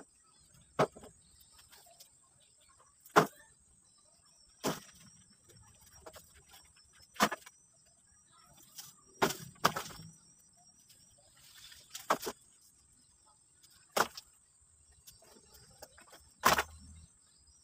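Heavy branches thud as they are dropped onto a woodpile.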